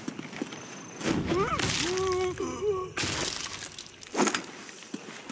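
A brief scuffle breaks out with heavy thuds and rustling.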